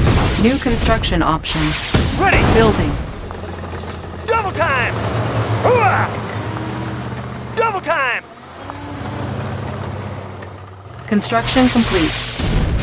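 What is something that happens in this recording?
Laser weapons zap and crackle in short bursts.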